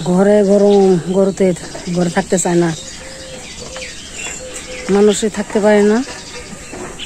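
A cow moos loudly close by.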